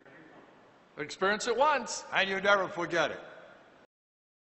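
A middle-aged man speaks cheerfully and close to a microphone.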